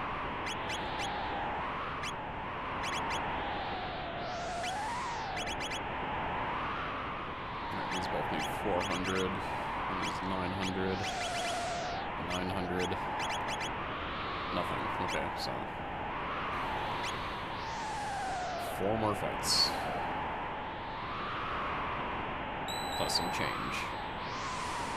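Gentle electronic music with a wavering melody plays throughout.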